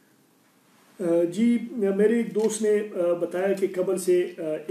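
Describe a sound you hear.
A man speaks calmly and clearly close to a microphone.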